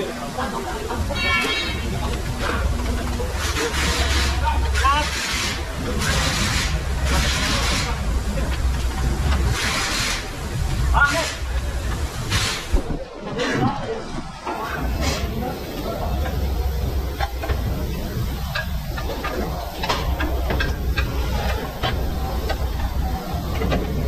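Metal parts clink and scrape as hands work on a car's underside.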